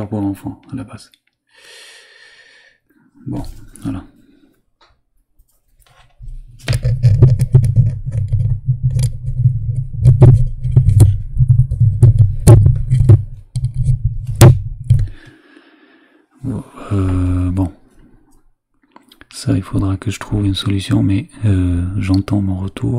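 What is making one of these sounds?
A man speaks close into a microphone.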